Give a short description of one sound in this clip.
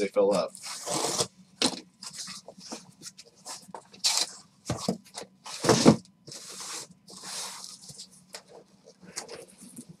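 Cardboard rustles and scrapes as a box is opened by hand.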